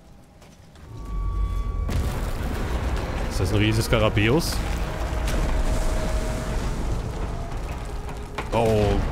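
A heavy stone door grinds and rumbles open.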